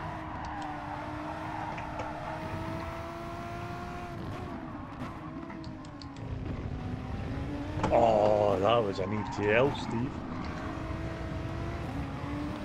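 A racing car engine hums steadily, its pitch rising and falling as the car speeds up and slows down.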